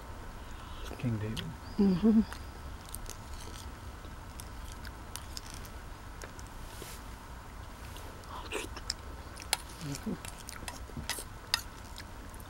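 A woman chews and slurps food close by.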